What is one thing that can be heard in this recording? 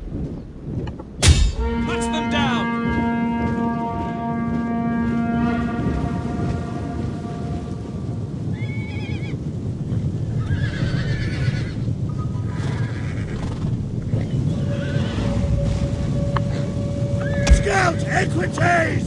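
Horses' hooves thunder steadily across open ground.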